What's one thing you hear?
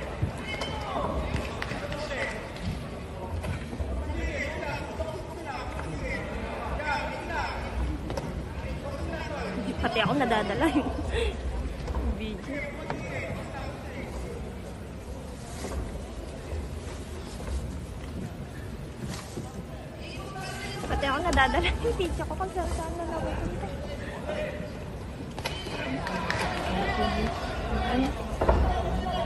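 A crowd murmurs and shouts in a large echoing hall.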